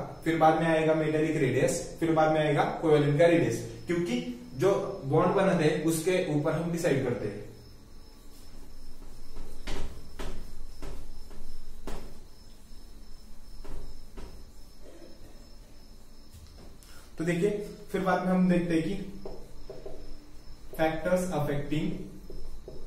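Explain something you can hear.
A young man speaks calmly and clearly, as if explaining, close by.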